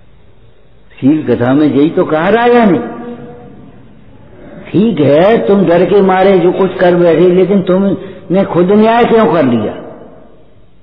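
An elderly man speaks calmly into a nearby microphone, with pauses.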